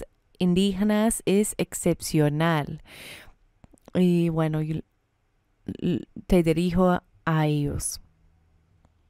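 A woman talks calmly into a microphone.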